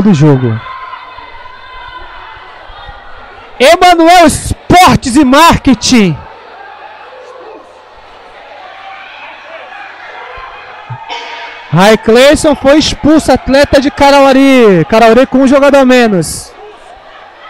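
A crowd murmurs and calls out in an echoing indoor hall.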